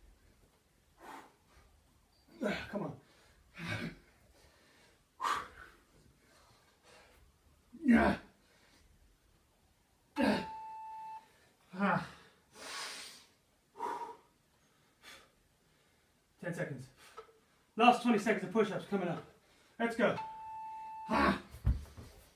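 A man speaks in short bursts nearby, out of breath.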